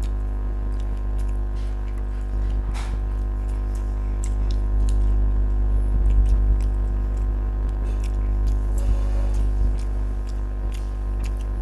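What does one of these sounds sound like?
A woman chews food loudly with wet smacking sounds.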